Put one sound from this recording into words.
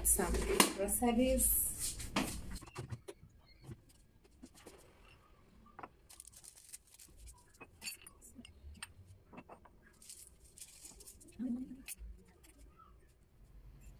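Dishes clink and knock as they are put away.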